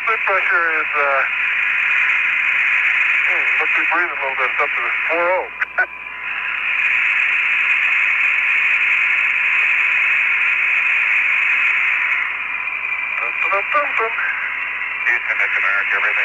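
A man speaks calmly over a crackling radio link.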